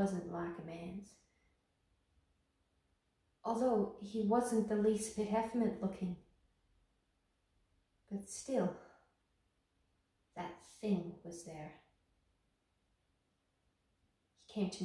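A young woman speaks calmly and closely, with pauses.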